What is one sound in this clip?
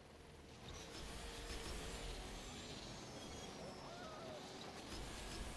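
A racing car's engine roars steadily at high speed.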